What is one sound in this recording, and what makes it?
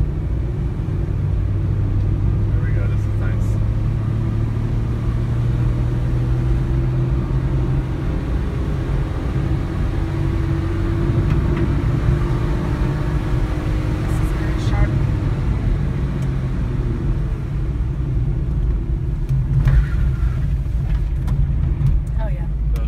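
A car's engine revs hard through bends, heard from inside the cabin.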